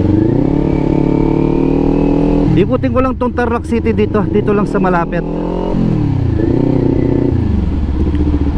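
A motorcycle engine hums steadily, its pitch dropping and rising as the rider shifts gears.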